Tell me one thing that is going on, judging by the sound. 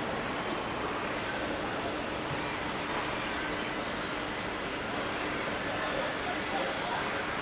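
Wind blows steadily outdoors.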